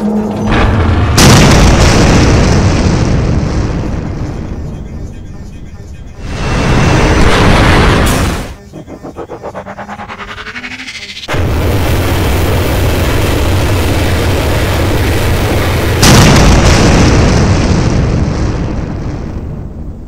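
Explosions boom loudly and rumble away.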